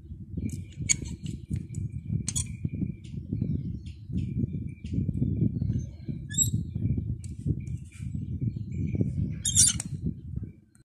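Metal parts click and clink as a tool is handled up close.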